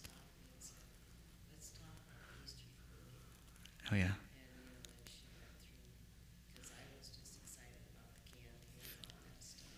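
A man speaks calmly to an audience in an echoing hall.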